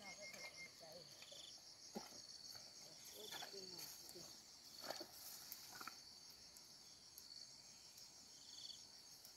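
Footsteps tread softly through grass and undergrowth.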